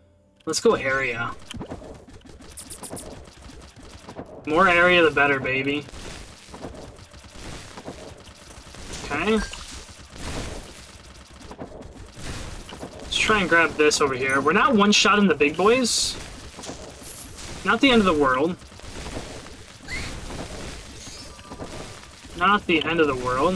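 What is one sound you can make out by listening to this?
Swooshing slashes and hits from a video game's combat ring out rapidly.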